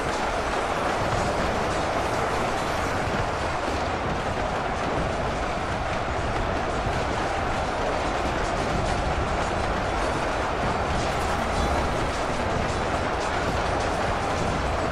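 Many footsteps of a large marching army rumble steadily.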